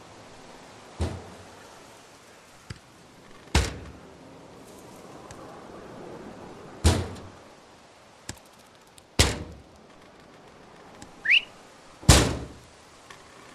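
Rifle shots ring out one after another, each echoing away.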